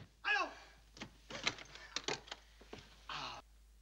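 A door latch clicks and a door opens.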